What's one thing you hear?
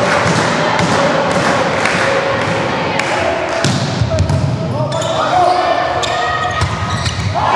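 A volleyball is struck with a sharp slap.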